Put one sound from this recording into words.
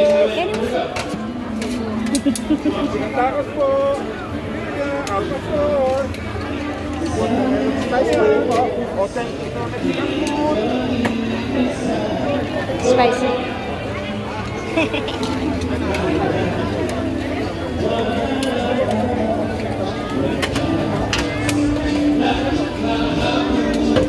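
A crowd of people chatters around outdoors.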